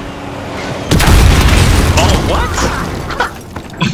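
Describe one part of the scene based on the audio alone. A helicopter explodes with a loud blast.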